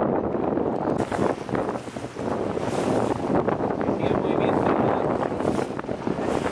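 Choppy waves slosh and splash against small boats.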